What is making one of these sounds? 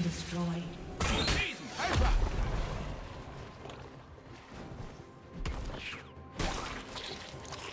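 Video game spells whoosh and burst in quick blasts.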